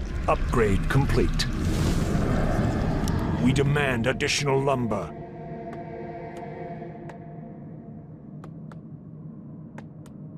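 Magic bolts zap and crackle in a battle.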